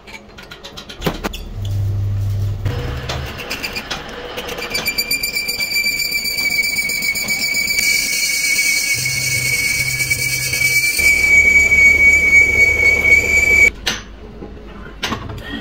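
A metal lathe motor hums as the chuck spins.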